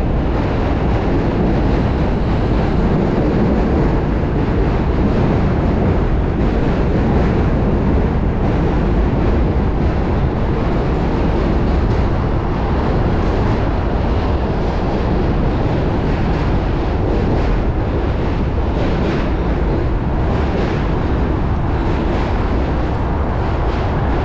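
Bicycle tyres hum and rattle over the path.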